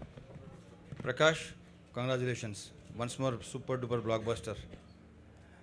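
A man speaks calmly into a microphone over loudspeakers in a large hall.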